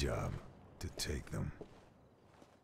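A man speaks calmly and briefly, close by.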